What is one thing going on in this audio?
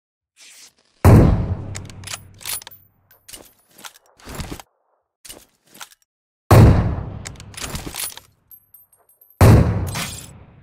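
Loud gunshots boom and echo.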